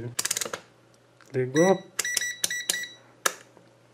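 A rotary dial clicks as it is turned.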